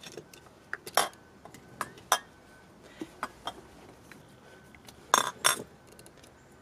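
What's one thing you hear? Glass lamps clink as they are set down.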